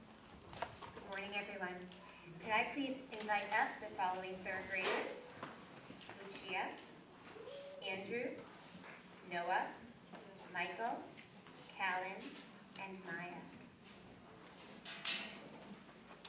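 A young girl reads out into a microphone.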